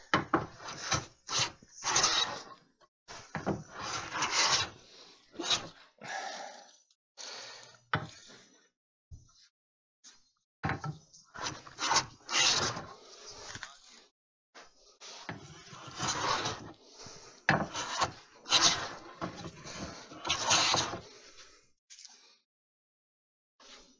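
A hand plane shaves wood in long rasping strokes.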